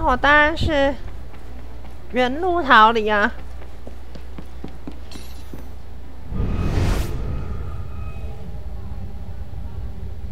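Footsteps patter quickly across a floor.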